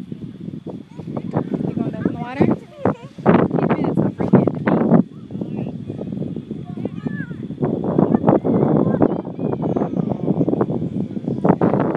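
Young children shout and chatter close by outdoors.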